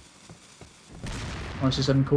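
A handgun fires a loud shot.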